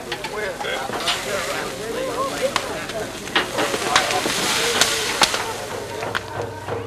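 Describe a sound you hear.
Meat sizzles on a grill.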